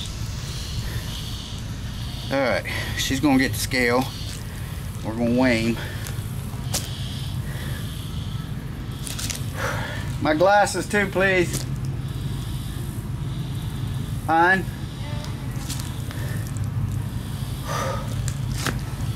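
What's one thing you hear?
A turtle's claws scrape softly on the pavement as it walks.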